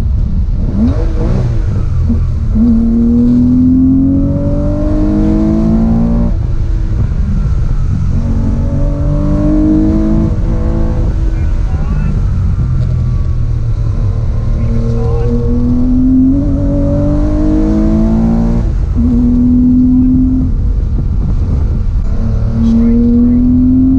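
Tyres rumble on the road inside a car.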